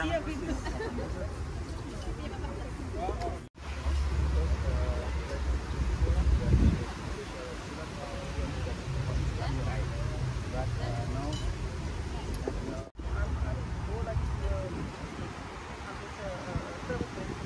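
Men and women chat among themselves at a moderate distance, outdoors.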